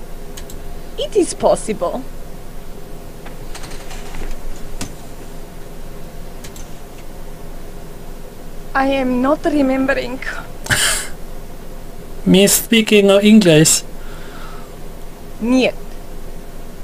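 A middle-aged woman speaks calmly in short replies.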